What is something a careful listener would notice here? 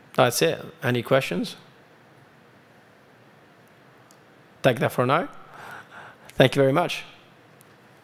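A man speaks into a microphone in short phrases.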